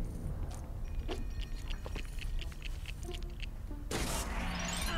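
Plastic bricks clatter and click as they scatter.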